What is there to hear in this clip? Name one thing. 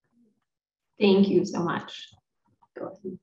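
A second woman speaks calmly over an online call.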